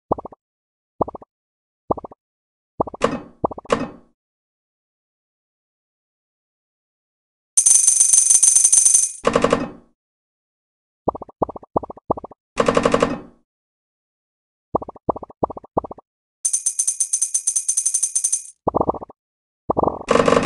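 Short, bright game blips pop, one after another, as balls are picked up.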